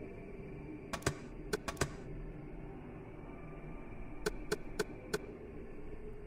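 Menu selections click with short, bright ticks.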